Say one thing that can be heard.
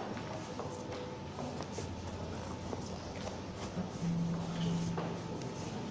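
Footsteps tap on a hard floor in an echoing room.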